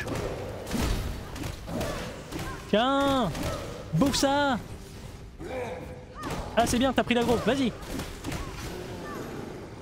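A sword strikes with sharp metallic hits.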